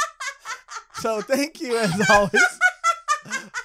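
A young man speaks cheerfully into a close microphone.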